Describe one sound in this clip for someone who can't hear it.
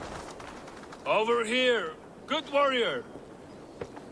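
A man calls out in a deep, calm voice, close by.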